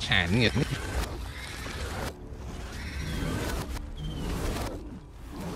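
Heavy blows thud and crunch in a fight between beasts.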